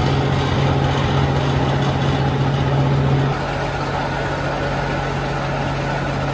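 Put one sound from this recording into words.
A machine hums and rattles steadily nearby.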